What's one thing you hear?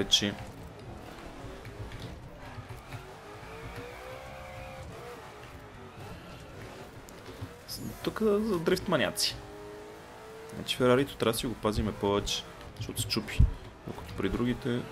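A racing car engine roars and revs.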